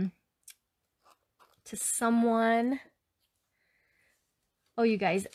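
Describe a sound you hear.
A marker pen scratches lightly on paper.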